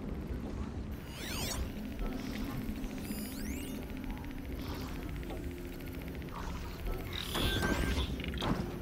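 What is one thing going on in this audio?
A high shimmering sweep rings out.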